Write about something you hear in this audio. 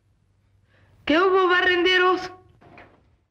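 A man speaks loudly and firmly nearby.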